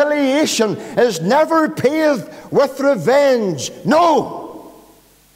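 A middle-aged man speaks with animation over a microphone in an echoing hall, then falls silent.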